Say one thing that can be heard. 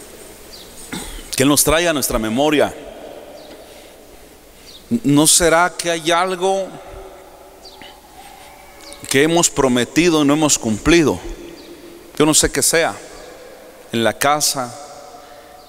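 A man speaks with animation through a microphone, in bursts with pauses, echoing in a large hall.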